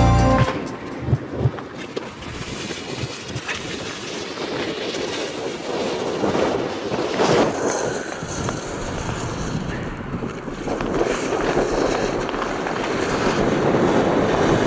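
Wind blows hard across an open snowfield.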